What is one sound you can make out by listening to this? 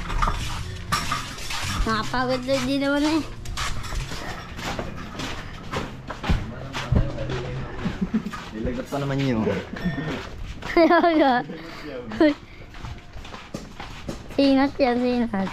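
Footsteps scuff along a concrete path.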